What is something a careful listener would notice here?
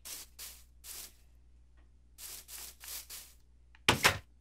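Footsteps scuff along in short, quick steps.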